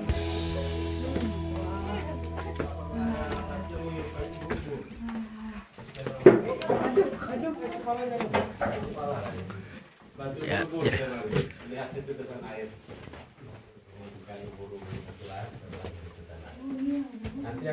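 Young men and women talk with animation nearby, their voices echoing in a rocky space.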